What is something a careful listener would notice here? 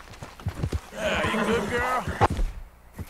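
A horse whinnies.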